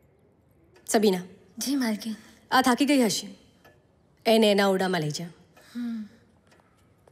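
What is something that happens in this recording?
A woman speaks calmly in reply, close by.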